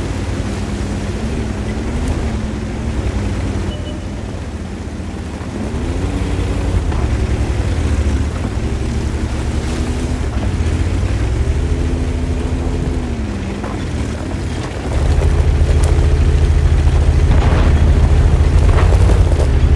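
A tank engine rumbles and revs up and down as the tank drives.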